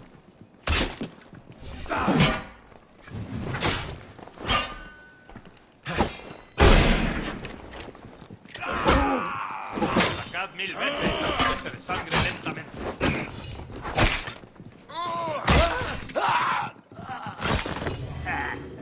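Swords clash and strike in a fast melee fight.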